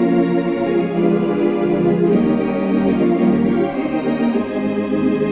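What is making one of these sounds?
An organ plays a slow, sustained melody.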